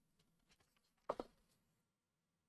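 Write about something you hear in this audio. A paper page turns with a rustle.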